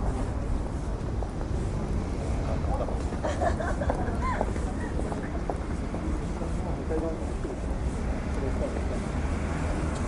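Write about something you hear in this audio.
A car engine rumbles low and steady as a car creeps closer.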